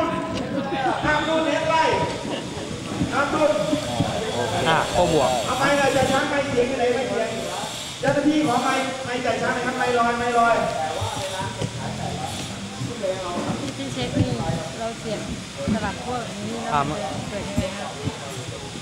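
A young man speaks calmly and steadily into a close microphone.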